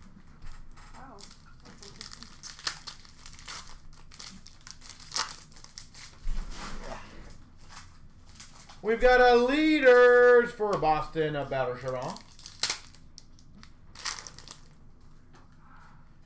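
Plastic packaging rustles and clicks as it is handled close by.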